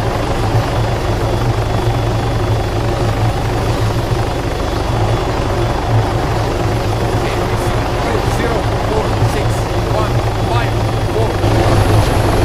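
A helicopter's rotor thumps and roars steadily nearby.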